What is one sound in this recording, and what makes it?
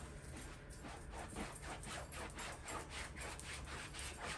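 A paintbrush swishes in quick, repeated strokes.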